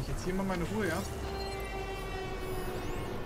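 An electronic scanning hum rings out steadily.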